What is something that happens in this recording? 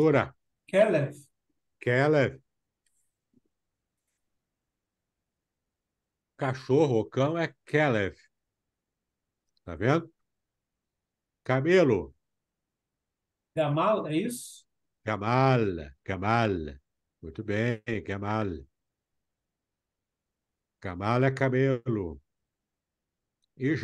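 A man speaks calmly into a microphone in short phrases, heard as in an online call.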